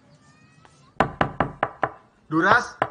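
Someone knocks rapidly on a wooden door.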